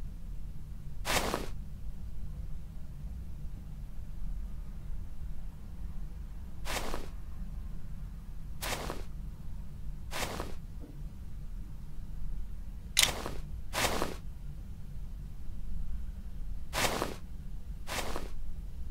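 Fuses click and whoosh softly into their slots, now and then.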